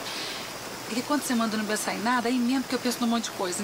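A second young woman answers calmly close by.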